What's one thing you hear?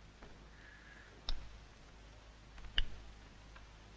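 A lighter clicks.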